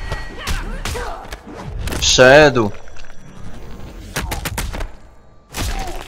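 Heavy blows land with loud, bone-crunching cracks.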